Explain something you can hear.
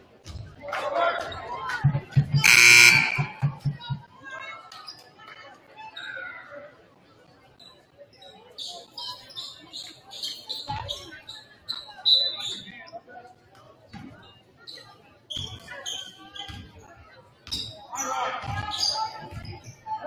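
A basketball bounces on a hardwood floor with a hollow echo.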